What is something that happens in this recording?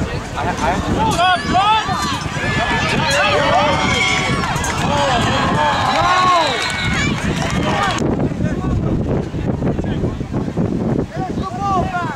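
A crowd of spectators cheers and shouts in the open air.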